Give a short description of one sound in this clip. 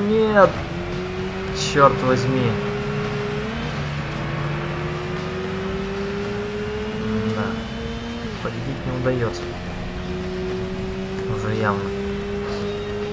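A racing car engine revs high and climbs through the gears.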